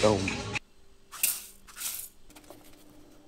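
Dry oats pour into a metal bowl.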